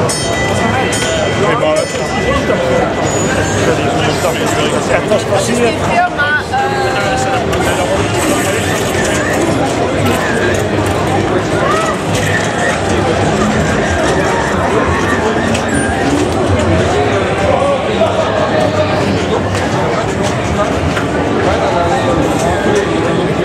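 A dense crowd of men, women and children chatters all around in a large echoing room.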